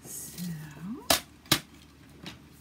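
A plastic paper trimmer is set down on a hard surface with a couple of knocks.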